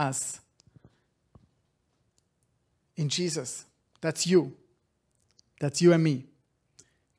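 A man speaks close into a microphone in short, lively bursts.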